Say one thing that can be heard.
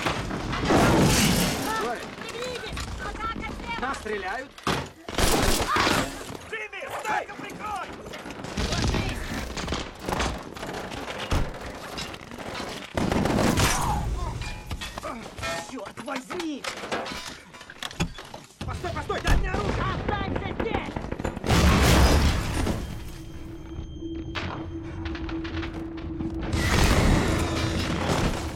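Loud explosions boom nearby.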